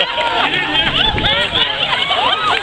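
Water splashes loudly as a man jumps into a pool.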